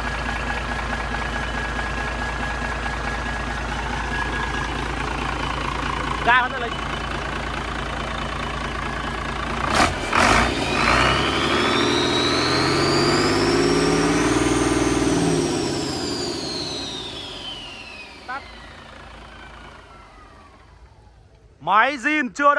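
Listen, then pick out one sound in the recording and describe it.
A large diesel engine runs loudly, revs up and then winds down to a stop.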